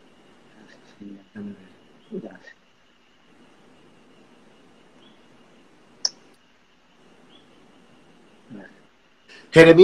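A young man speaks calmly over an online call, in short bursts.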